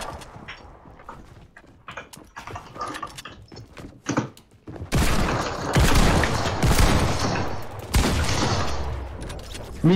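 Wooden walls clatter quickly into place, over and over.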